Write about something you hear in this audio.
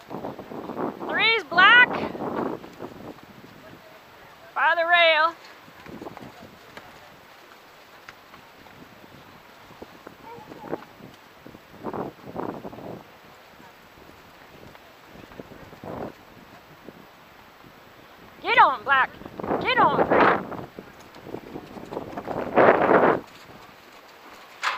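Hooves thud on soft dirt as cattle move about.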